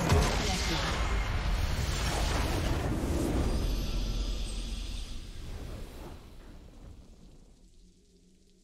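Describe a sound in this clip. A loud explosion booms and rumbles, then slowly fades away.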